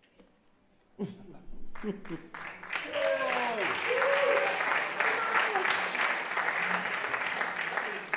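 An accordion plays on a stage.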